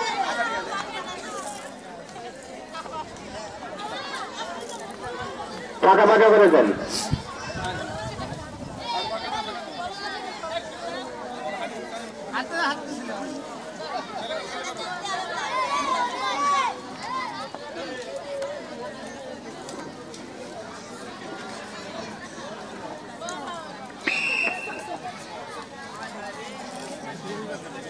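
Children chatter and call out nearby, outdoors.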